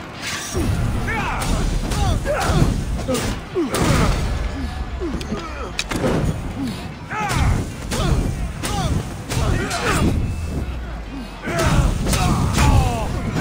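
Blades strike with sharp metallic hits.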